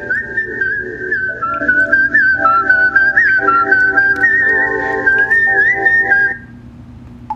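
A phone rings with a melodic ringtone.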